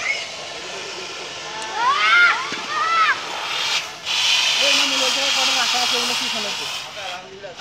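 Fire extinguishers spray with a loud, steady hiss.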